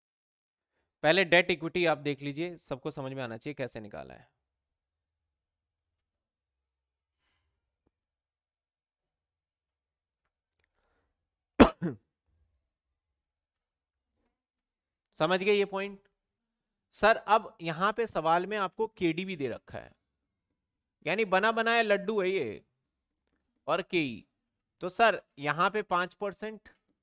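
A man speaks calmly and clearly into a close microphone, pausing between phrases.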